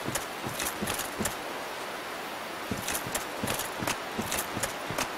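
Armoured footsteps crunch rhythmically over grass and leaves.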